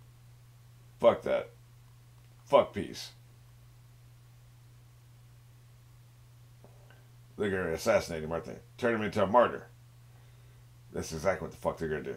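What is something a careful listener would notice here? An older man talks calmly into a microphone, heard as if over an online call.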